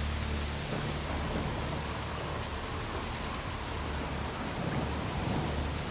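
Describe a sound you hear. Water trickles and splashes down over rocks.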